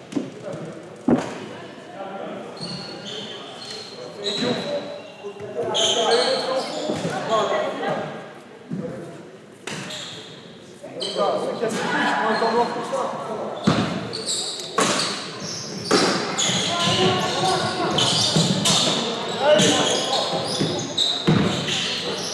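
Young men call out to one another across the court.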